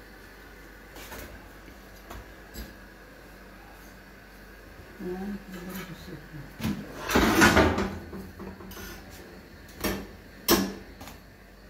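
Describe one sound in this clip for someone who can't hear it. Metal tongs click and scrape against a pan.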